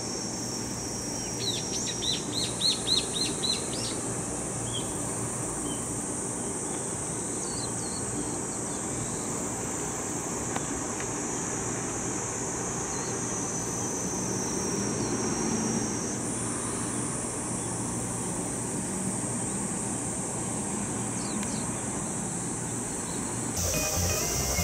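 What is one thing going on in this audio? A truck engine rumbles as the truck drives past at a distance.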